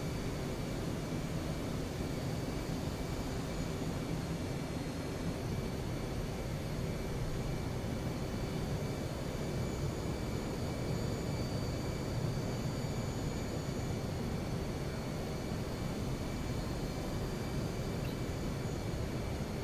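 A jet engine roars steadily inside a cockpit, with a constant rushing hum.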